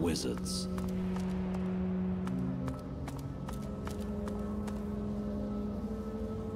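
Footsteps tap lightly on stone.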